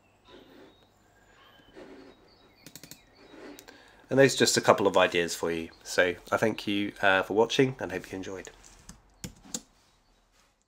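A middle-aged man talks calmly and with animation, close to a microphone.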